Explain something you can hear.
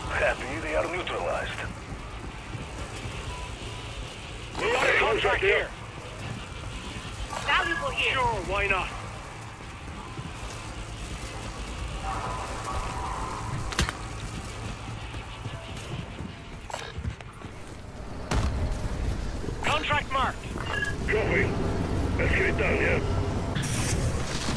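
A man talks with animation through a headset microphone.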